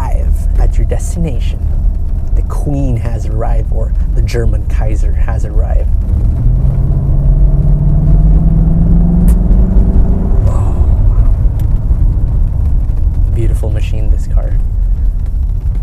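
Road noise rumbles steadily from inside a moving car.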